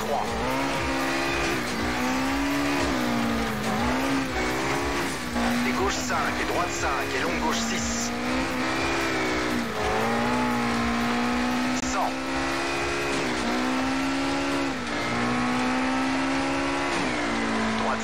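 A rally car engine revs hard, rising and falling as the gears shift.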